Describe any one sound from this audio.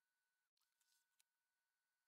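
A console's power button clicks as it is pressed.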